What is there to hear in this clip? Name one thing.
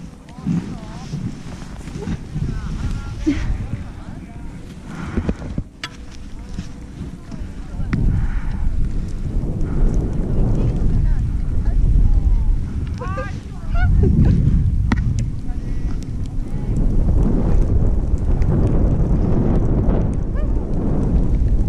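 Wind rumbles loudly across a close microphone.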